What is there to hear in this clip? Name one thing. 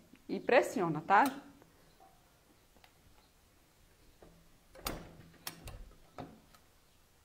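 A metal hand press clunks as its lever is pressed down.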